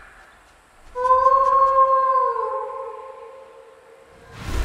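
A magical shimmer rings out.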